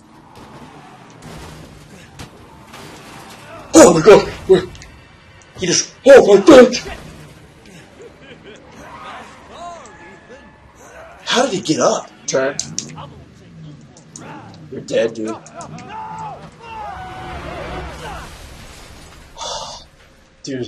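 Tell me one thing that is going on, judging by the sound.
A young man talks excitedly into a microphone, close by.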